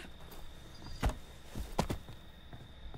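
A body thumps while climbing through a window.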